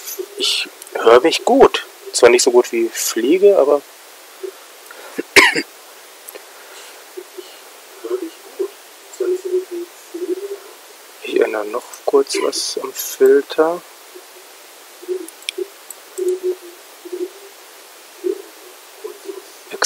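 A second young man speaks quietly over a headset microphone.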